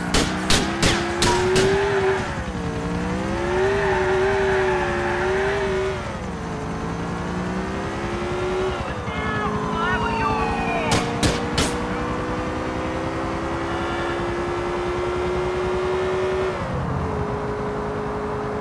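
A car engine hums and revs up and down as the car drives along.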